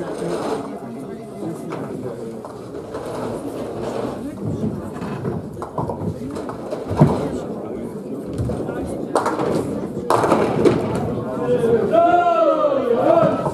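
Heavy balls rumble along bowling lanes in a large echoing hall.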